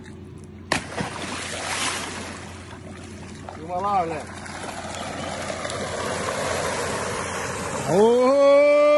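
Water churns and splashes as an animal thrashes about.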